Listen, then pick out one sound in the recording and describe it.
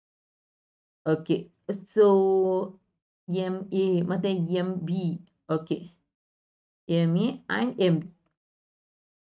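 A young woman explains calmly, close to a microphone.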